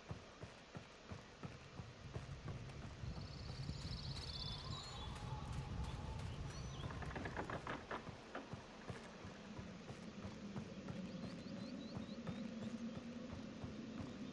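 Footsteps thud steadily on wooden planks and rock.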